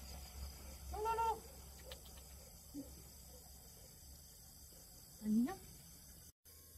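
A young woman calls out briefly in a high, sing-song voice.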